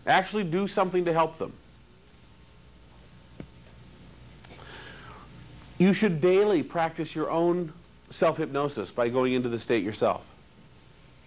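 A man speaks calmly to a group in a room, with pauses between phrases.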